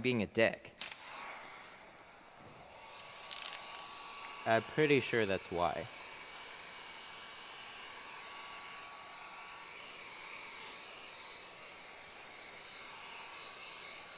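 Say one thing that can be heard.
A heat gun blows with a steady whirring hiss.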